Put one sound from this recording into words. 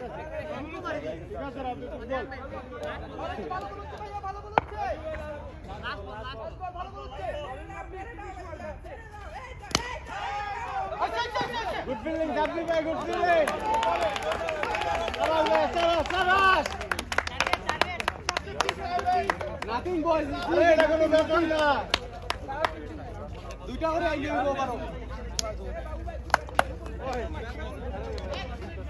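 Young men shout and chatter outdoors across an open court.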